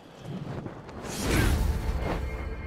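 A burst of wind whooshes and scatters rustling leaves.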